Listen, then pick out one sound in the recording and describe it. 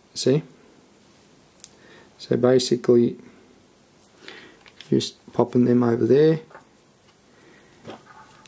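Small plastic parts click and scrape softly under fingers.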